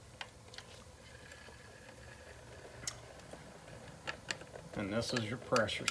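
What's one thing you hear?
A screwdriver clicks and scrapes against metal parts.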